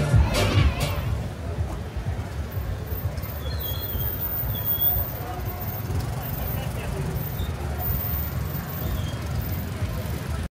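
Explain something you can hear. Car engines idle and rumble in slow street traffic.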